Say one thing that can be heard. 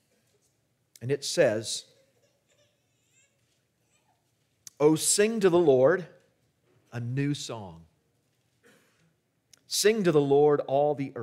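A man speaks calmly into a microphone, reading out with pauses.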